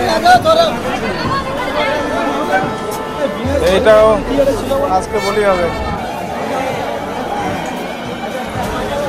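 A crowd of men and women chatter loudly all around, outdoors.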